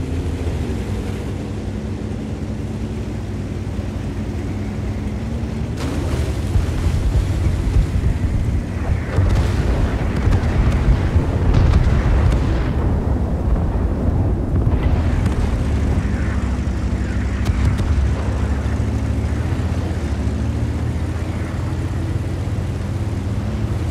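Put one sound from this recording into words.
A heavy tank engine rumbles and whines steadily.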